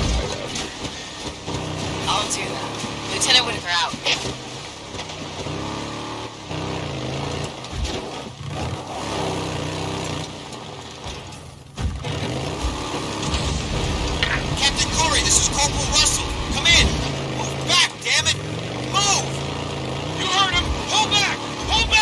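A motorcycle engine hums and revs steadily.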